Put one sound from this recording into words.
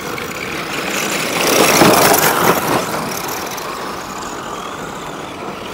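Small tyres scrape and skid over loose dirt.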